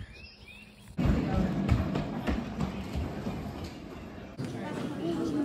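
Plastic wheels of a push toy car rumble across a wooden floor.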